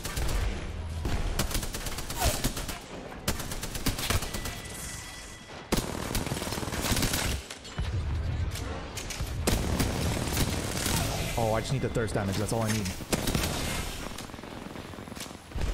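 Energy blasts boom and crackle.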